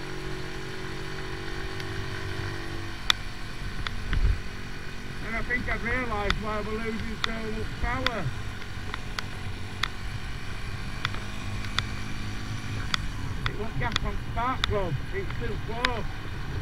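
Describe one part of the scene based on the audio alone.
A motorcycle engine hums steadily while riding along a road.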